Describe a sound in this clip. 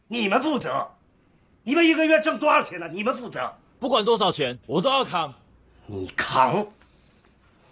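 A middle-aged man speaks angrily and close by.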